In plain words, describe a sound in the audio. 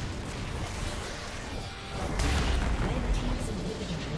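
A tower crumbles with a heavy crash.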